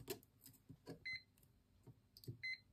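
A multimeter gives short high beeps.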